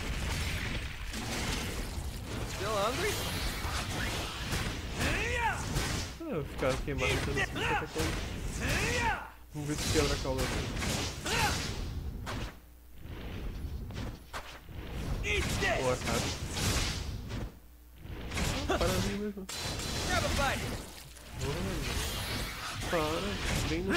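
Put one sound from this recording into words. A blade slashes and strikes a monster with sharp hits.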